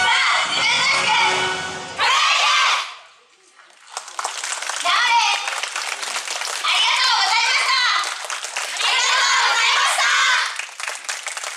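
A group of young women chant loudly together in bursts, outdoors.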